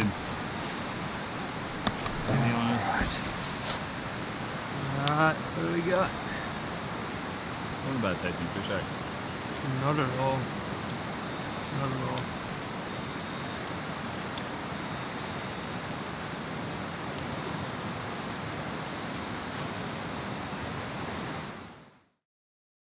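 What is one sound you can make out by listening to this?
A campfire crackles and pops.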